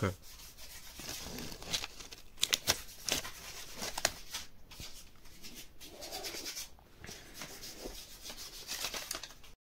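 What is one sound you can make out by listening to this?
Stiff paper crinkles and rustles as it is gripped and lifted.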